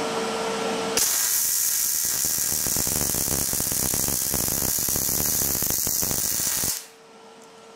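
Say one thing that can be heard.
A welding torch crackles and sizzles loudly as it welds metal.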